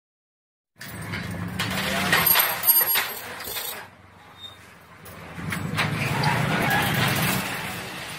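A metal folding door rattles and scrapes as it slides open.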